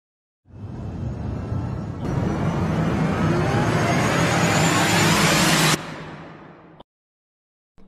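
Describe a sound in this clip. Flames roar and crackle loudly, then fade.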